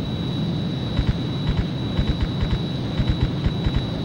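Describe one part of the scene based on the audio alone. A missile streaks away with a rushing hiss.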